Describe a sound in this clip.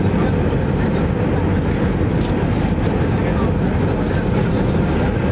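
Jet engines and rushing air roar steadily inside an airliner cabin during the approach.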